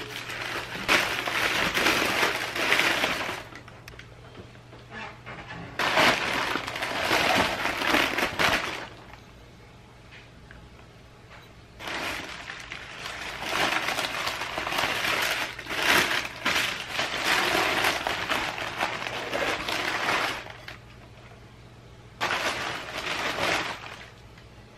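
Tissue paper crinkles and rustles loudly up close.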